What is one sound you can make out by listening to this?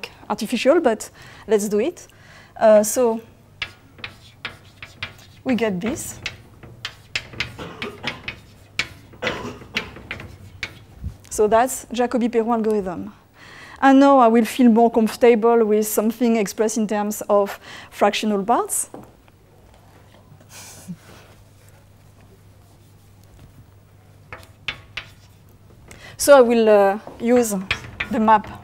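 A woman lectures calmly, heard through a microphone.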